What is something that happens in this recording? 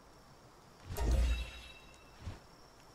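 A bright chime rings out with a deep boom.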